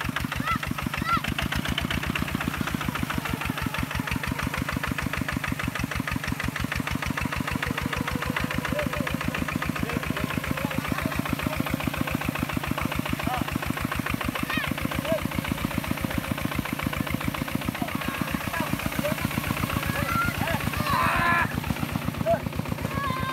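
A small diesel engine chugs loudly and steadily.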